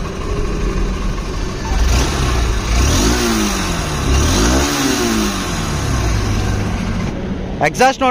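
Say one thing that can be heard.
A motorcycle engine idles and revs nearby.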